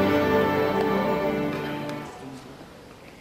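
A string orchestra plays a final sustained chord in a large echoing hall.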